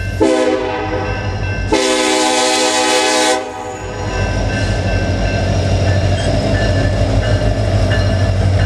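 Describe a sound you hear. A diesel locomotive rumbles past close by.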